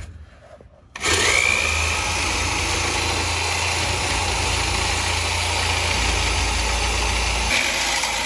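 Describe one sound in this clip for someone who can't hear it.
A reciprocating saw buzzes loudly, cutting through a metal pipe.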